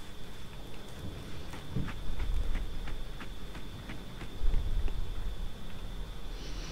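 Heavy boots thud steadily on a hard floor.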